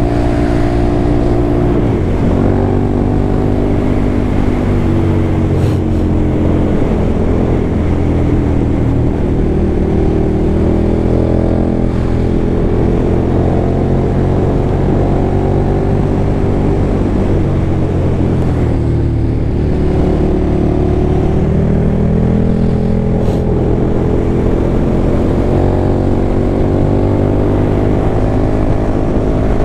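A motorcycle engine hums and rises and falls in pitch as it speeds up and slows down.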